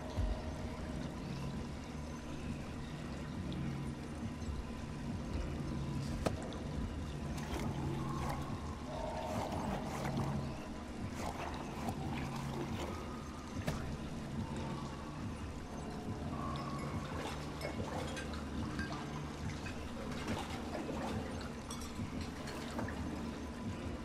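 Water sloshes and splashes as dishes are washed in a sink.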